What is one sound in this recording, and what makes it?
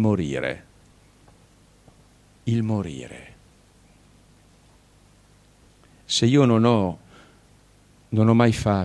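An elderly man speaks slowly and calmly into a microphone in a large hall, with pauses between phrases.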